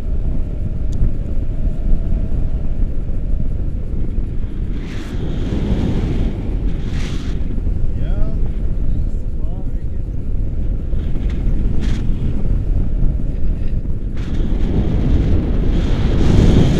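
Strong wind roars and buffets loudly outdoors.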